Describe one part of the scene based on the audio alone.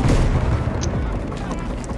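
A heavy explosion rumbles in the distance.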